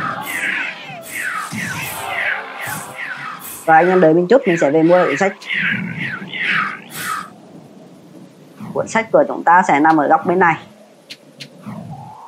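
Fiery spells whoosh and crackle in quick bursts.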